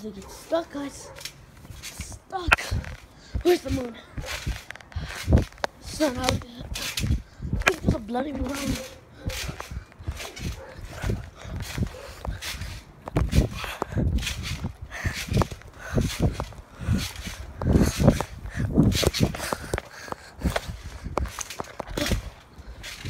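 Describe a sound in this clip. A trampoline mat thumps and creaks as someone bounces on it.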